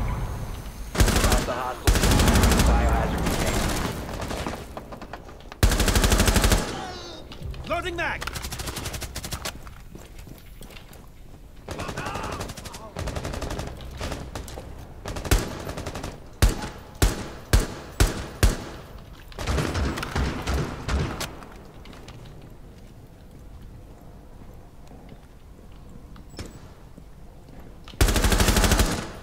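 Rifle shots ring out in short bursts.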